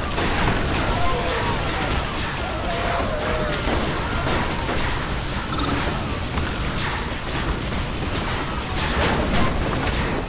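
Explosions boom in a game battle.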